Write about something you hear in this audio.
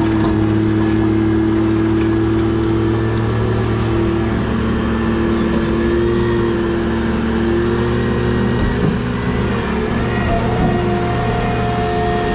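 A diesel engine rumbles and drones steadily close by.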